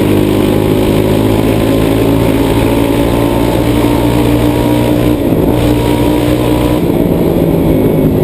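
A quad bike engine hums steadily up close, its pitch shifting slightly as it changes speed.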